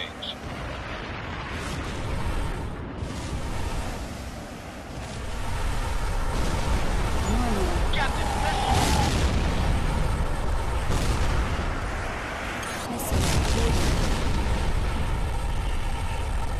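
Explosions boom in short, heavy bursts.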